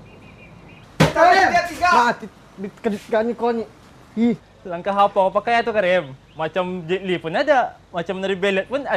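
A young man speaks loudly and with animation nearby.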